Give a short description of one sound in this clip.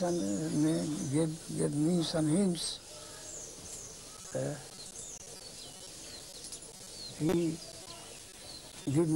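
An elderly man speaks nearby in short, calm phrases.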